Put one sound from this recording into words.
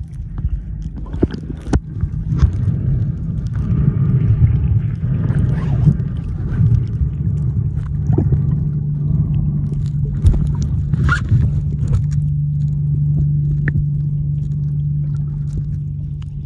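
Swimmers kick and splash at the surface, sending bubbles rushing.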